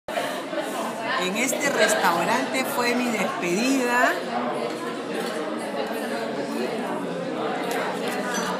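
Diners chatter in the background.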